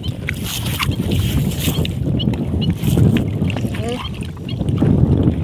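Water laps gently around a small boat.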